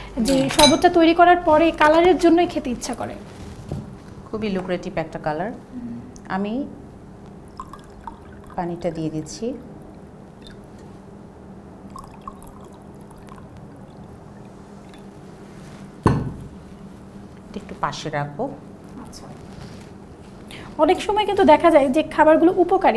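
A young woman speaks calmly and clearly close to a microphone.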